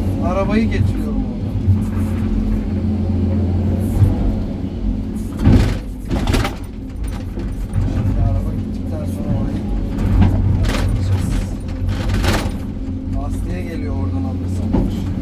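Hydraulics whine as the excavator arm moves.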